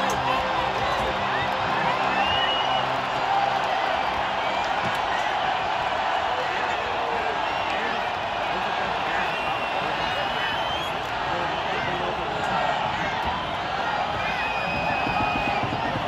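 A large crowd cheers, whistles and shouts in a big open space outdoors.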